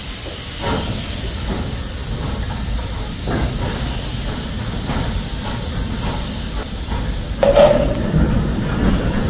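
A steam locomotive chuffs slowly past, puffing steam.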